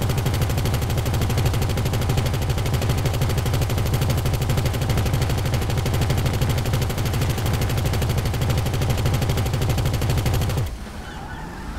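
A car engine rumbles steadily with a fast, rhythmic throb.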